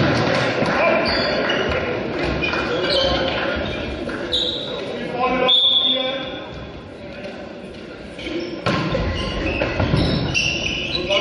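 Sports shoes squeak on the hall floor.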